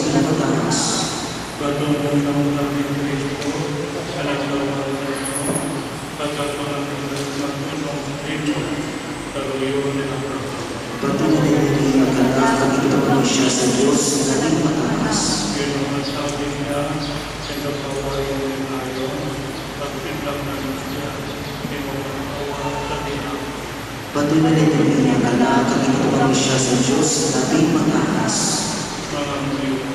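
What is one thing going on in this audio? A man sings through a microphone in a large echoing hall.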